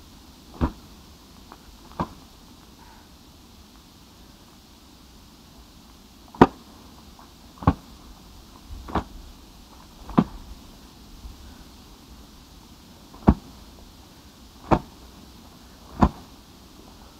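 A beater slaps down hard on burnt ground in sharp thuds.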